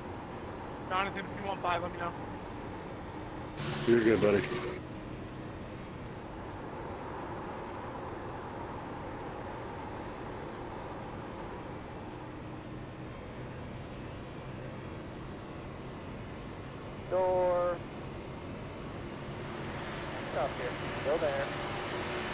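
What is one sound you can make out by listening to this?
A racing car engine drones steadily.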